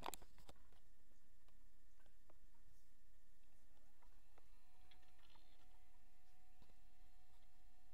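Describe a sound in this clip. An old laptop whirs and hums quietly as it starts up.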